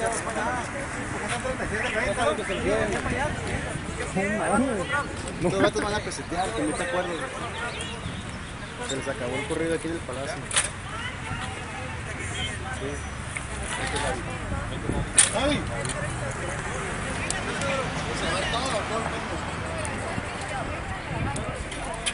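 Several men talk at once nearby, outdoors.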